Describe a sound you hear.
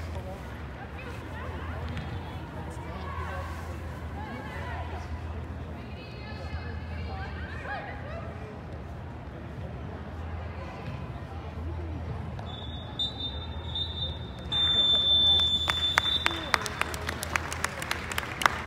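Young women call out to each other across a large echoing hall.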